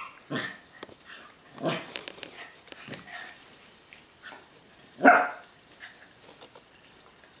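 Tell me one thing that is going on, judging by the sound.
Paws scrabble on a hard floor.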